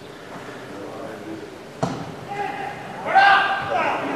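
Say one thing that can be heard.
A football is kicked hard.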